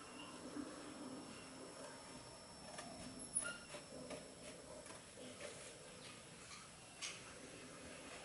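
A man cuts cardboard with a knife, with soft scraping and clicks.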